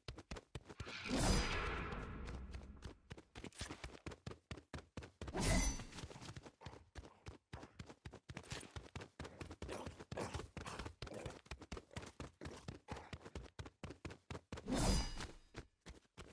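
A whooshing swing of a weapon sounds in a game.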